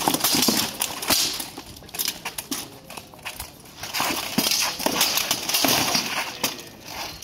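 Plate armour clanks and rattles as fighters move.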